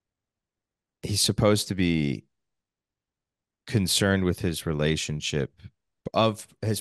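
A man talks with animation over an online call.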